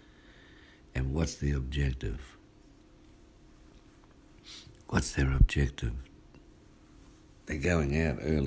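A man speaks calmly, close by, in short bursts with pauses.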